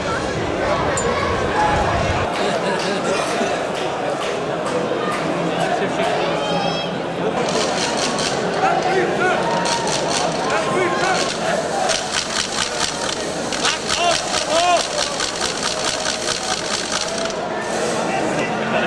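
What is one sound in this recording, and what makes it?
A large crowd of fans chatters and cheers outdoors.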